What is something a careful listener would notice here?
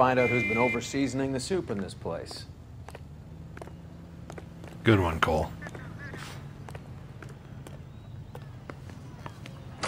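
Footsteps tap on pavement.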